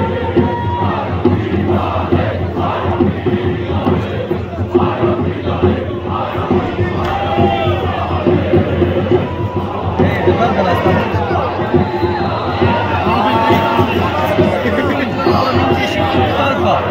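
A large crowd of football supporters chants in unison in an open stadium.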